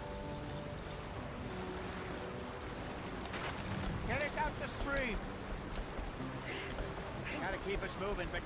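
A wagon splashes through a shallow stream.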